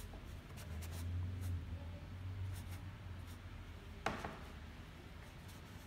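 An ink brush strokes across paper.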